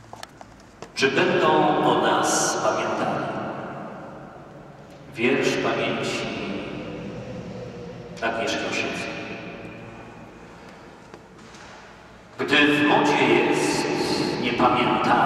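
A man reads aloud with feeling into a microphone, echoing through a large hall.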